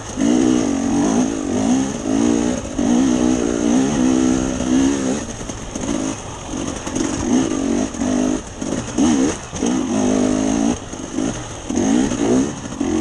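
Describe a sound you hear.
A motorbike engine revs up and down close by.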